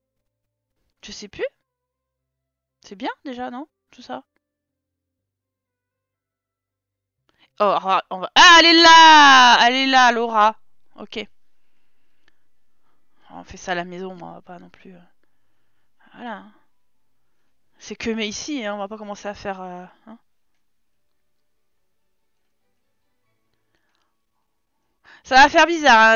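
A young woman talks with animation into a close microphone, in bursts with pauses.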